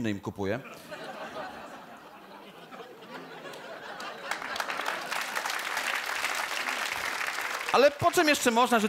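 An audience claps and laughs in a large hall.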